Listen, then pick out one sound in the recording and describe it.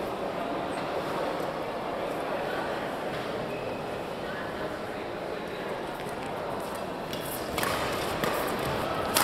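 Shoes squeak and patter on a court floor.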